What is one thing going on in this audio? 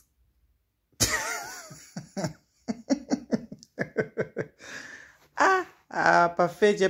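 A man laughs heartily in short bursts.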